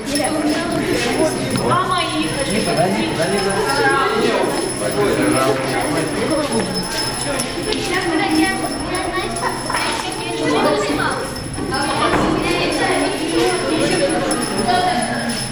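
Young people chatter and call out to one another.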